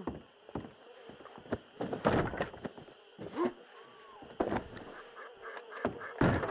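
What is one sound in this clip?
Boots thud on wooden floorboards.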